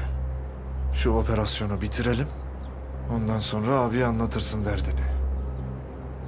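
A middle-aged man speaks.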